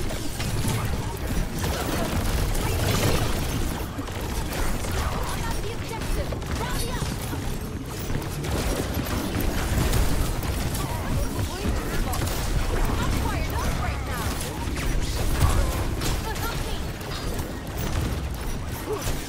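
Game weapons fire and clash in rapid bursts.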